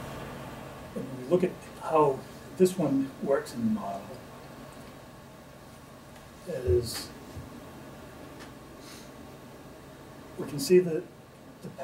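A middle-aged man speaks calmly in short bursts with pauses.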